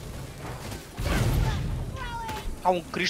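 A fiery explosion booms with a low rumble.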